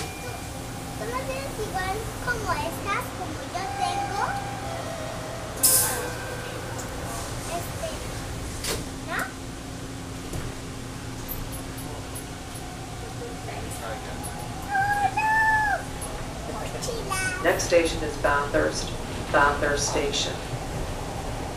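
A young child babbles and squeals nearby.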